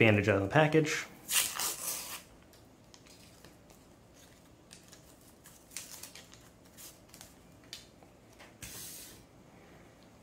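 Paper wrapping crinkles and tears as hands peel it open.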